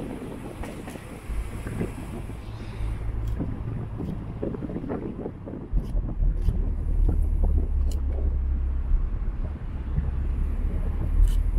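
A car engine hums steadily as the car drives up a road.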